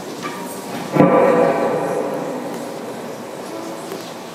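A guitar chord rings out loudly through a hall and slowly fades.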